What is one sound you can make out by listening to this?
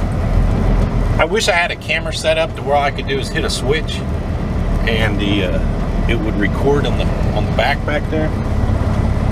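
A middle-aged man talks calmly in the cab.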